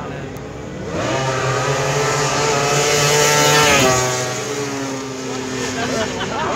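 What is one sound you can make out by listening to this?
A quad bike engine roars loudly as it races past close by, then fades away.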